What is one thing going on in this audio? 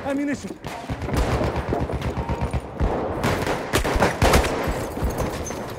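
Gunfire rattles in rapid bursts close by.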